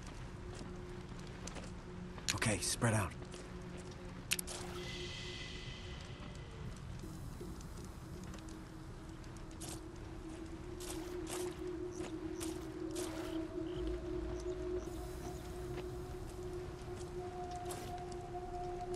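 Footsteps crunch softly on gravel.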